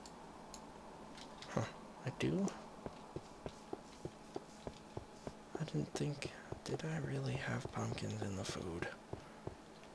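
Footsteps tap steadily.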